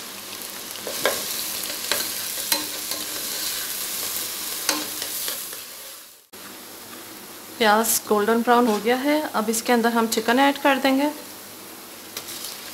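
A spoon scrapes against a pan.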